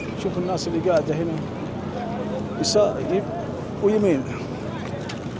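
Men talk with animation close by in an outdoor crowd.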